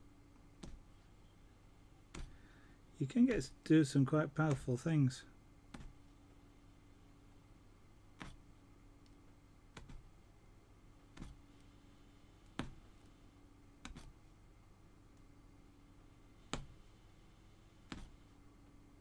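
A punch needle taps and pokes through taut cloth at a steady pace.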